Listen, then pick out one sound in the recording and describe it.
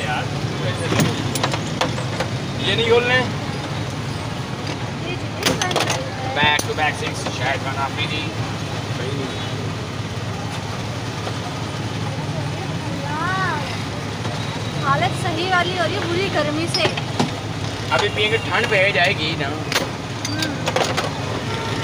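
Glass jars clink and knock.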